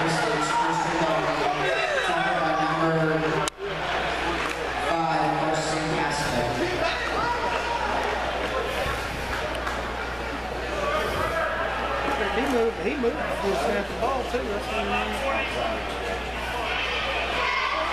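A crowd of young men and men talk and shout in a large echoing hall.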